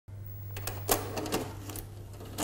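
A videocassette clunks and clicks as it is pushed into a player.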